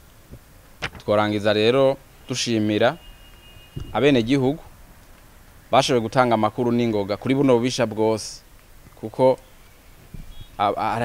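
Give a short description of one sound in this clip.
A man speaks calmly and clearly into a close microphone, in short phrases.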